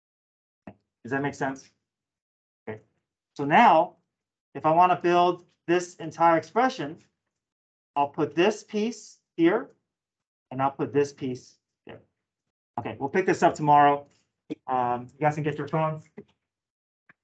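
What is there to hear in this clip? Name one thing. A man explains calmly, heard through an online call.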